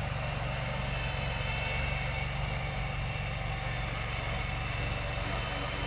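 A small mowing machine's engine drones steadily.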